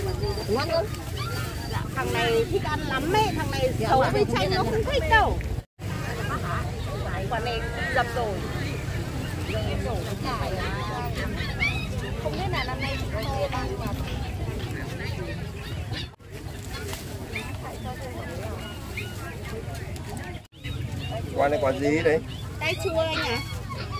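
A middle-aged woman talks calmly up close.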